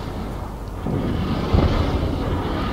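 An explosion roars and crackles.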